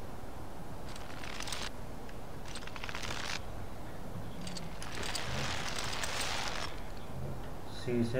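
Hands grip and slide along a rope.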